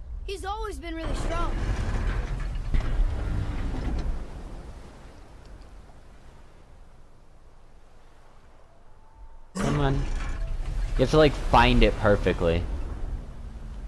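A heavy wooden crank grinds and rumbles as it turns.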